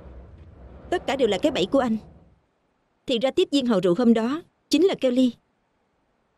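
A young woman speaks sharply and accusingly.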